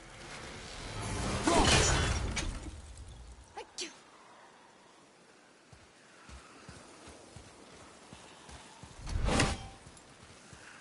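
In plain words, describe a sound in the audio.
An axe whooshes through the air.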